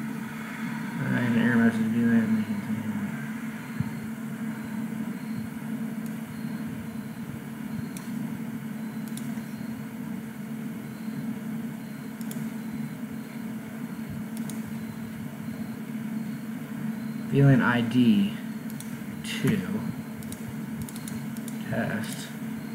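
A man speaks calmly into a microphone, in brief bursts.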